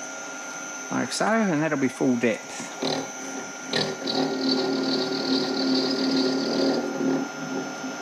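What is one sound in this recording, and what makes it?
A milling cutter grinds and chatters against metal.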